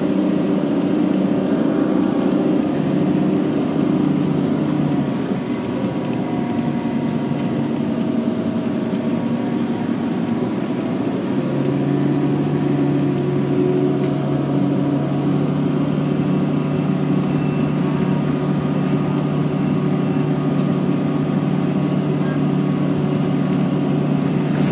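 Tyres roll on the road beneath the bus.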